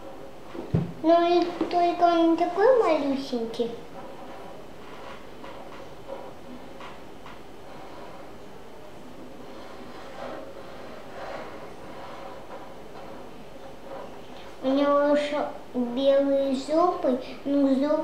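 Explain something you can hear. A young girl speaks close by in a high, sing-song voice.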